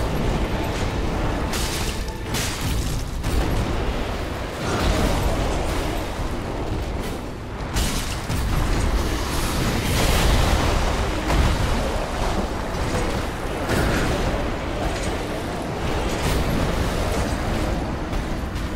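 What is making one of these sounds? A huge beast roars and growls.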